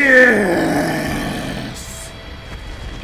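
A huge creature lets out a deep dying roar that sinks and fades.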